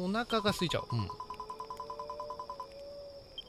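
Short, rapid beeps tick evenly as game dialogue text prints out.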